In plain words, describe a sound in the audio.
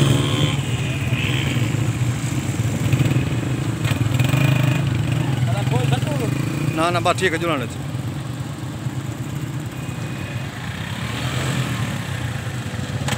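Motorcycle engines rumble as motorcycles ride past close by.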